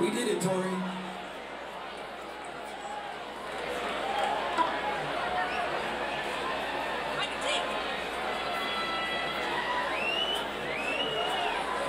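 A woman sings into a microphone on a stage in a large hall.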